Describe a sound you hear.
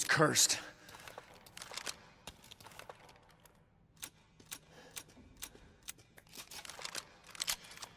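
Metal clicks sharply as a shotgun is reloaded.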